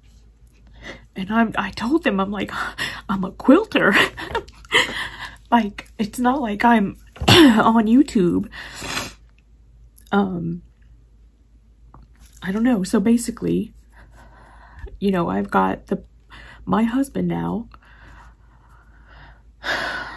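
A woman speaks close up in a tearful, shaky voice.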